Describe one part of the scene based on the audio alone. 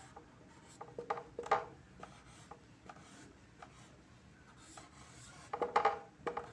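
A marker squeaks and taps across a whiteboard in short strokes.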